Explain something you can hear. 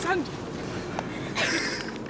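A bicycle rolls past close by.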